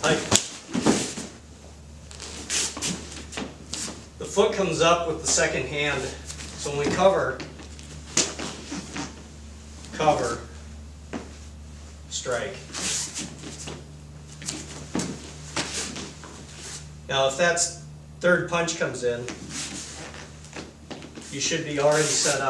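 Bare feet thump and shuffle on a mat.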